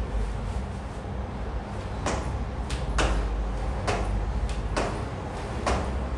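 Shoes scuff and tap on a hard floor.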